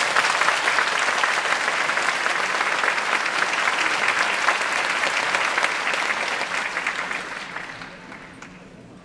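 An audience applauds loudly in a large hall and the applause fades away.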